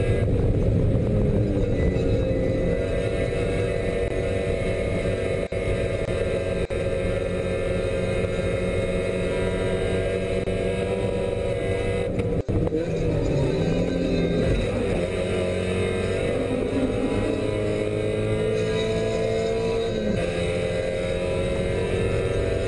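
A race car engine roars loudly from inside the cabin, rising and falling in pitch as it shifts gears.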